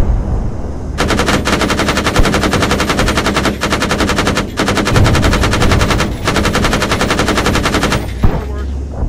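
A heavy cannon fires in rapid bursts.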